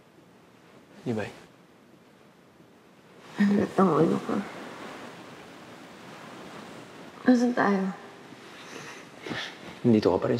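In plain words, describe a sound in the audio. A young man speaks in a low, earnest voice up close.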